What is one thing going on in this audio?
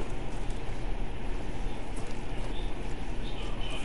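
Leafy branches rustle as someone pushes through dense bushes.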